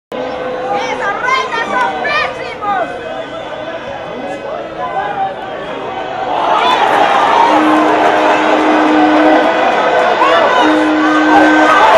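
A large stadium crowd cheers and grows to a loud roar.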